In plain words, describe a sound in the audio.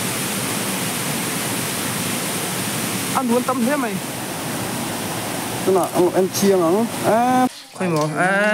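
Water rushes and splashes over rocks nearby.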